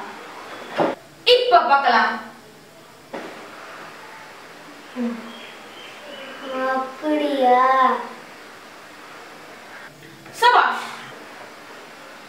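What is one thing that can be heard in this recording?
A boy speaks calmly, close by.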